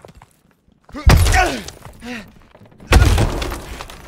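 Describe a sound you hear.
A heavy wooden door is kicked open with a loud bang.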